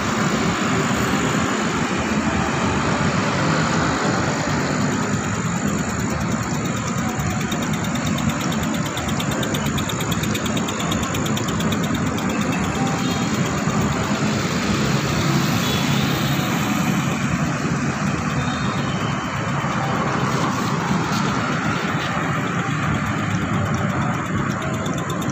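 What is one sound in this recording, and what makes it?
Traffic rumbles steadily on a nearby road outdoors.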